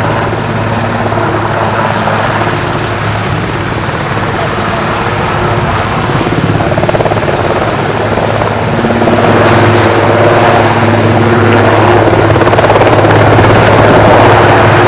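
A helicopter's engine whines loudly close by.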